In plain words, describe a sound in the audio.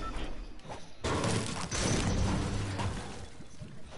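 A metal tool strikes a wire fence with sharp clangs.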